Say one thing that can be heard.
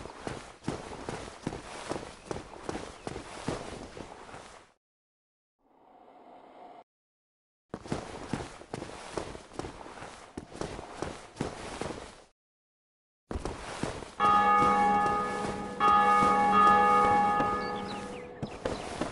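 Heavy footsteps clank quickly on stone.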